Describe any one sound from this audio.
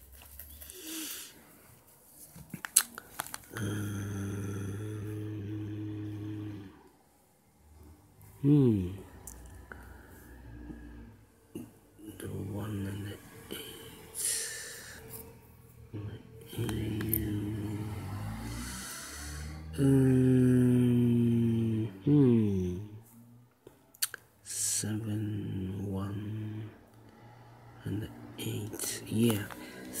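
A pen taps and scratches lightly on paper.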